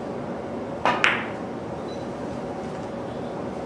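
Billiard balls click together.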